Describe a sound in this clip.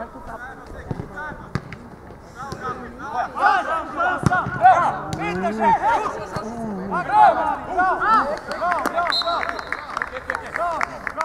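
Young women shout and call out to each other across an outdoor pitch.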